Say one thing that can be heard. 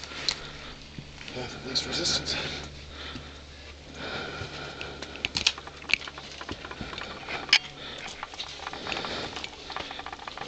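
Dry branches rustle and snap against a climber.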